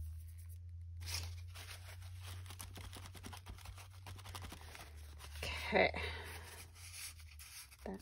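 Paper rustles and crinkles as it is handled.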